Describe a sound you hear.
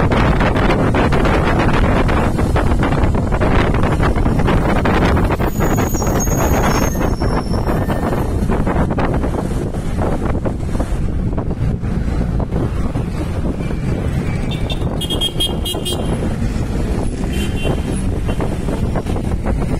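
Traffic passes by on a busy street.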